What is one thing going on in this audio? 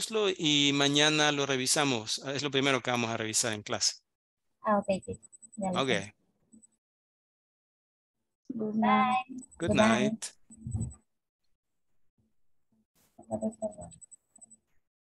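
A woman speaks over an online call, in short bursts with pauses.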